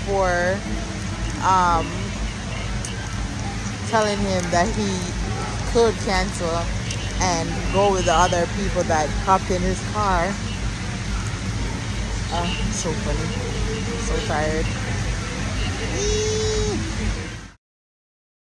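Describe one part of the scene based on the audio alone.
A woman sings close to a phone microphone.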